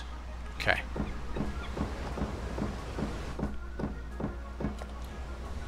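Footsteps thud steadily on wooden boards.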